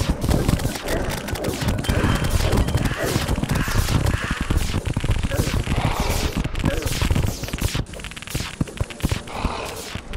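Rapid video game hit sounds crackle and thud in quick bursts.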